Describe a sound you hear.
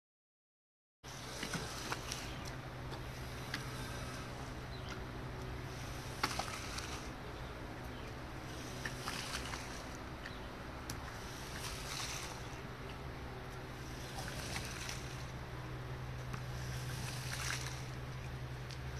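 Water sprays and splashes with a hiss in bursts onto a rug.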